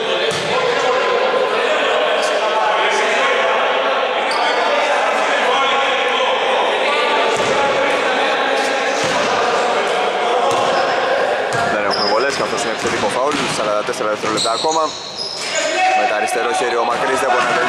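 A basketball bounces on a hardwood floor in an echoing hall.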